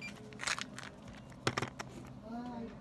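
A plastic pill bottle clicks and rattles as it is handled.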